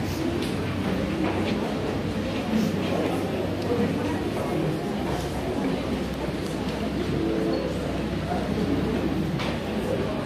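A crowd of men, women and children chatters all at once in a room.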